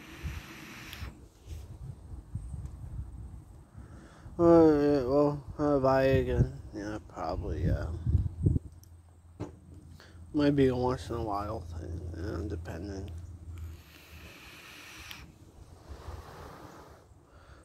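A man inhales from a vape and breathes out.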